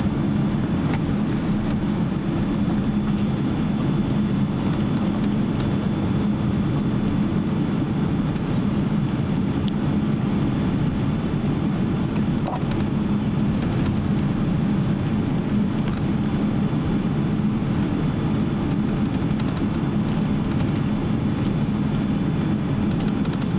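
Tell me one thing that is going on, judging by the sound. Jet engines hum steadily and low as an airliner taxis.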